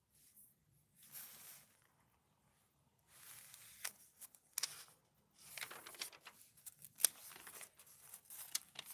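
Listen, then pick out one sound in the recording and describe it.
Glossy magazine pages rustle and flap as they are turned.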